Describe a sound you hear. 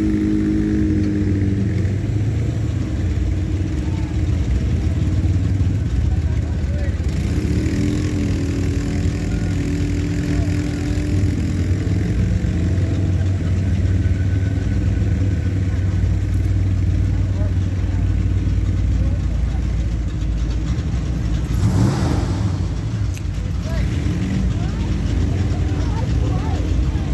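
Car engines rumble slowly past nearby.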